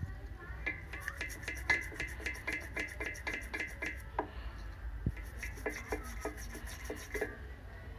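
A toothbrush scrubs rapidly against metal engine fins.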